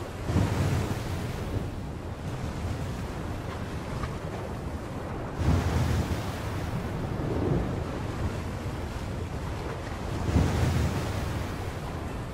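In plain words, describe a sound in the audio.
Rough waves surge and crash in a strong wind.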